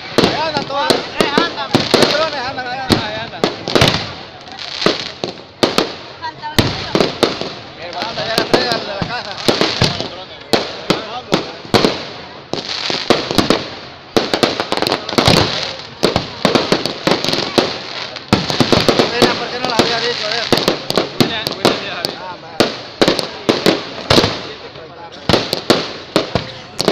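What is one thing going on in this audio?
Firecrackers bang and crackle in rapid bursts close by.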